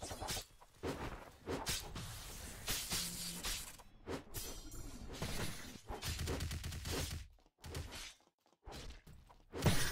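Sword slashes whoosh and strike in quick bursts.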